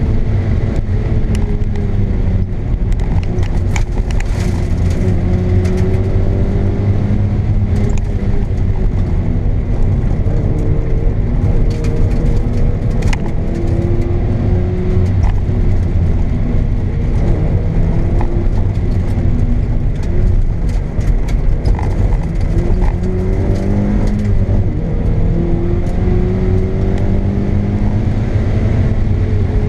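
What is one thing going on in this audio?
Tyres rumble and crunch over a rough road.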